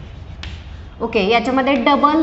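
A woman speaks clearly nearby.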